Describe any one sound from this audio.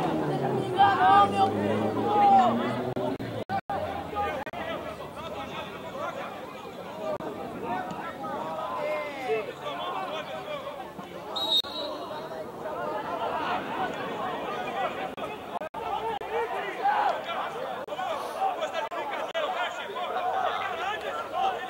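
Young men shout and call out across an open sports field.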